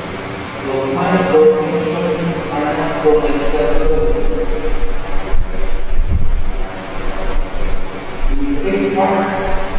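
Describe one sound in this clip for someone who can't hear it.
A group of young men and women recite together in unison.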